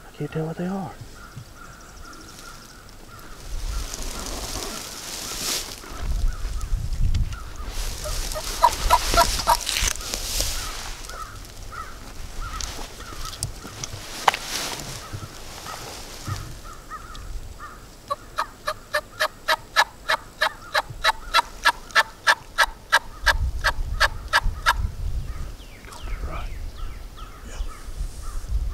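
Wind gusts through the trees outdoors.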